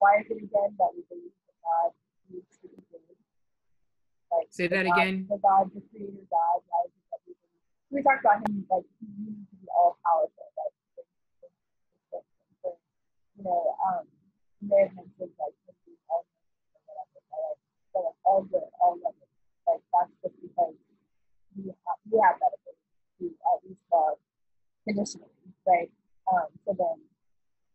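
A young woman speaks with animation through a microphone on an online call.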